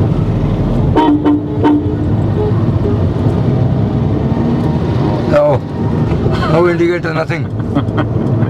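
A man talks and laughs nearby in the car.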